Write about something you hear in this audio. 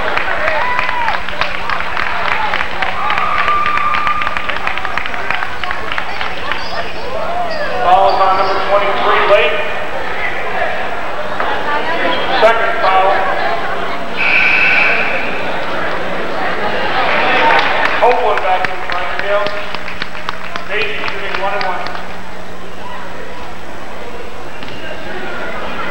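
A crowd chatters and calls out in a large echoing gym.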